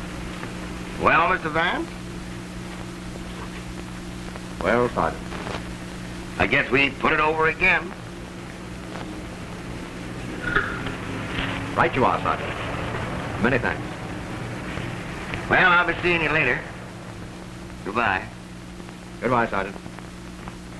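A man speaks calmly, heard through an old, hissing film soundtrack.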